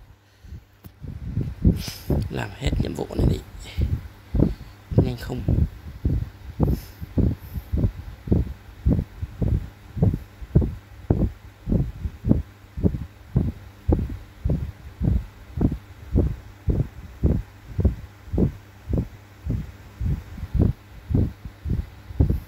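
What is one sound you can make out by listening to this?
A steady thumping beat pulses at an even pace.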